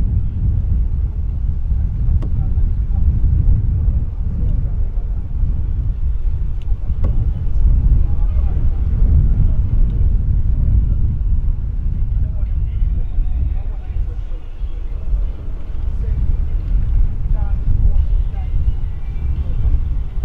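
Wind blows steadily into the microphone outdoors.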